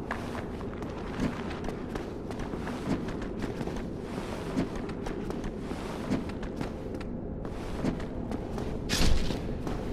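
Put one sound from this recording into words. Metal blades clang against a shield in repeated strikes.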